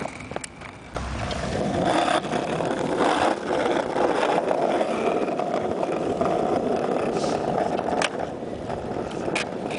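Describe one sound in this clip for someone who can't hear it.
Skateboard wheels roll and rumble over concrete slabs, clicking over the joints.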